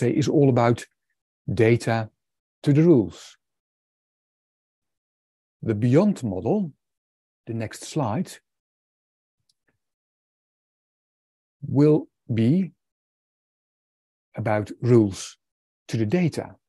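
A man speaks calmly in short phrases with pauses, heard through an online call.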